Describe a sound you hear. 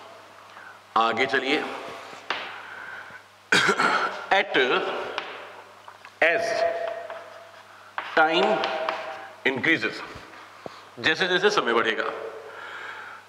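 A middle-aged man speaks calmly through a clip-on microphone.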